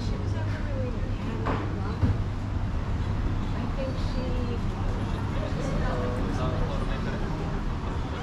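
Men and women chat at nearby tables outdoors.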